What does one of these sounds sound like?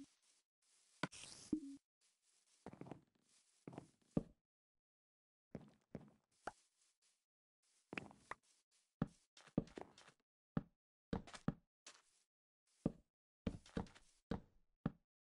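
Footsteps crunch on grass and sand in a game.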